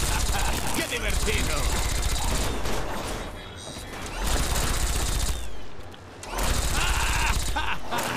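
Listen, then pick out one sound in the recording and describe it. A creature cackles with rough laughter.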